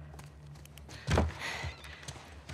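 A door swings open.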